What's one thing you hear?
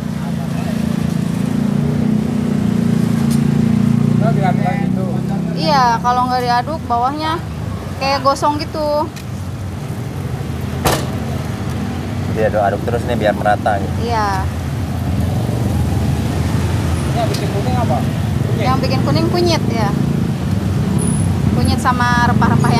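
Hot oil sizzles and bubbles steadily in a frying pan.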